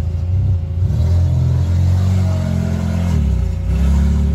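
A car rolls slowly up a tilted flatbed.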